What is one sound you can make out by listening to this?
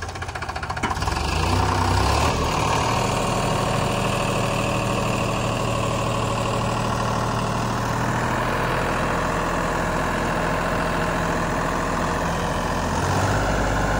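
A tractor engine revs up and drones loudly.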